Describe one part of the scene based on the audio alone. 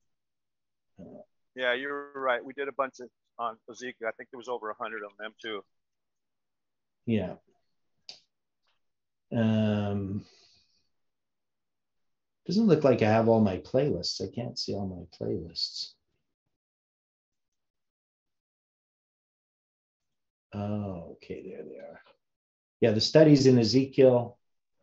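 An elderly man speaks calmly and closely into a microphone, with pauses.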